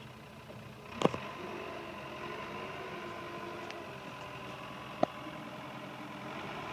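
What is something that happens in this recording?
A diesel engine revs up as a loader drives off.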